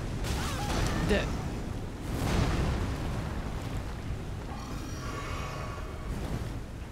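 Heavy weapons swing and clash in a fight, with loud whooshes and impacts.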